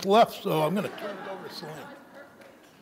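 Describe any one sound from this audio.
An elderly man speaks through a microphone.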